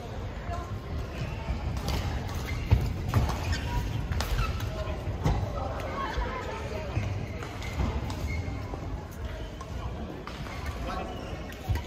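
Shoes squeak and thump on the court floor.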